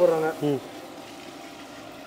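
Water pours into a pot.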